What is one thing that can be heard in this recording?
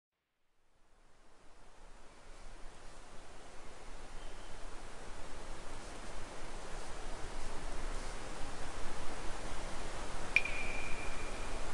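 Wind blows steadily across open ground, slowly growing louder.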